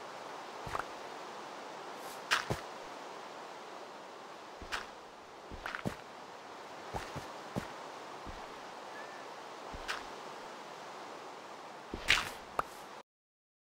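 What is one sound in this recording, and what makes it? A shovel digs into dirt with short crunching thuds.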